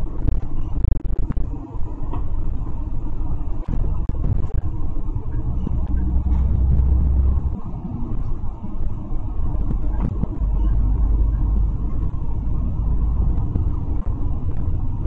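A bus engine rumbles steadily from inside the bus.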